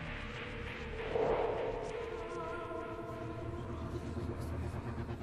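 A magical shimmer swells and rings out.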